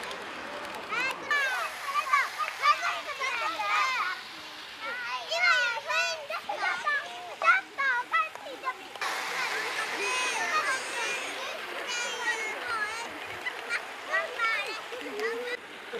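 Young children chatter and call out excitedly nearby, outdoors.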